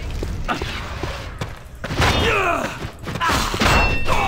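A sword slashes and strikes flesh.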